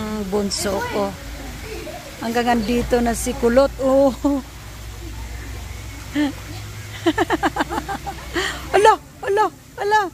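Water splashes as a girl swims close by.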